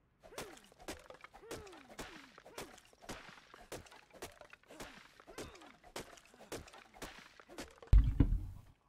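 A stone hatchet chops into wood with steady, rhythmic thuds.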